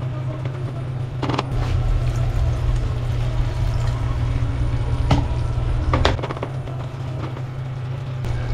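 A spatula scrapes and stirs rice in a metal pot.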